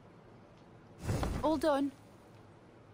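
A woman speaks briefly and calmly.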